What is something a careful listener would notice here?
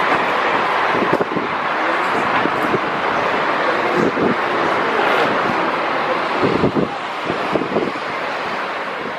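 A jet airliner roars loudly as it speeds down the runway and lifts off.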